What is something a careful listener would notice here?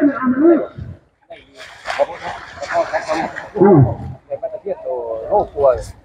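Water splashes as a net is pulled from a pond.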